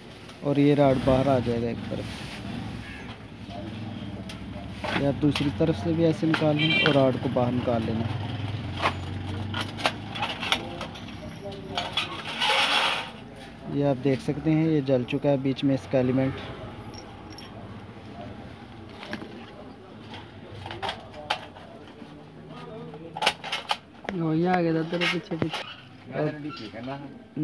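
Thin sheet metal clinks and rattles as it is handled.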